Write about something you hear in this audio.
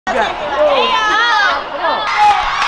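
A young woman shouts excitedly.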